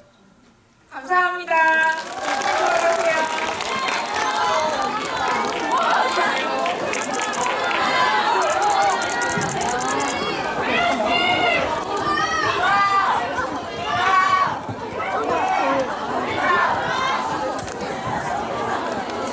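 A crowd of young women chatters excitedly close by.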